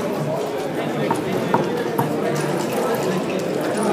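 Plastic checkers click as they are moved on a wooden board.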